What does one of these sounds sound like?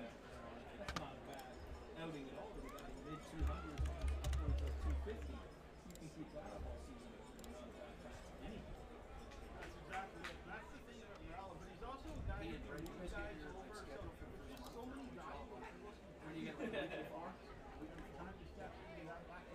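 A crowd murmurs in the stands outdoors.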